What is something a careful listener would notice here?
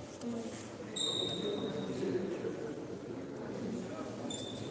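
Sports shoes squeak sharply on a court floor.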